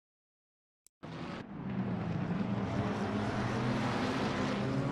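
Racing car engines roar together as a pack accelerates.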